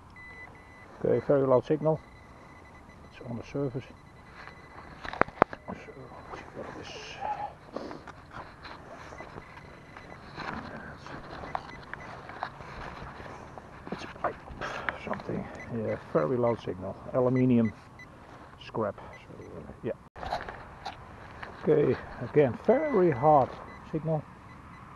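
A metal detector beeps and warbles.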